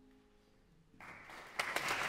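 A piano plays softly and its last notes ring out.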